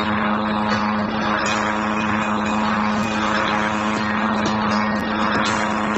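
A helicopter's engine and rotors drone steadily and loudly.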